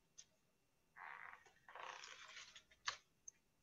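Bread tears apart softly.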